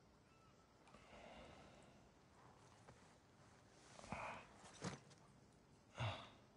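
A man groans and breathes heavily.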